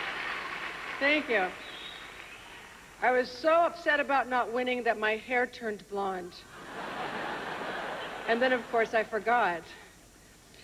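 A woman speaks clearly into a microphone, heard through a loudspeaker.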